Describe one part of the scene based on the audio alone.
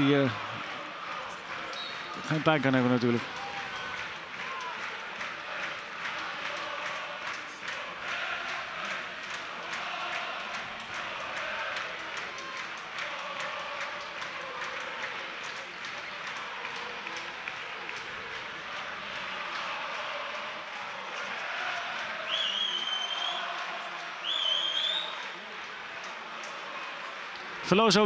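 A large crowd chants and cheers in an open stadium.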